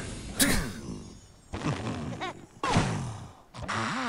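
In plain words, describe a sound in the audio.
A slingshot twangs as it launches.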